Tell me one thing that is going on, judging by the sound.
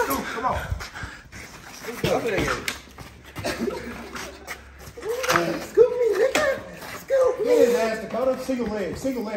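Young men shout and laugh with excitement nearby.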